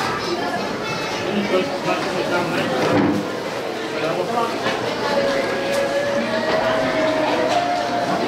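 Forks scrape and clink against plates.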